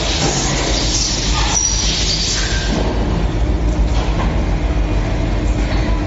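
Metal parts clank as a hand handles them.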